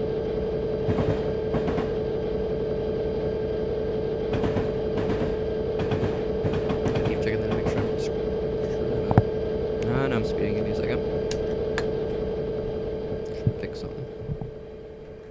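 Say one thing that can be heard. Train wheels clack over rail joints.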